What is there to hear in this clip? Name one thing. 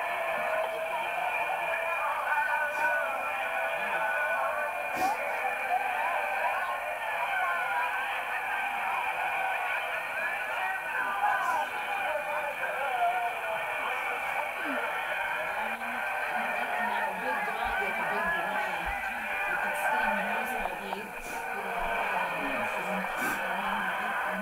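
Young boys talk and chatter, heard thinly through a small television loudspeaker.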